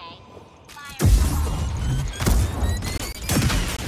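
A lightsaber ignites with a loud hum.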